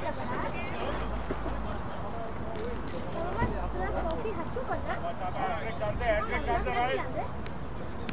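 Wind blows across the microphone in gusts.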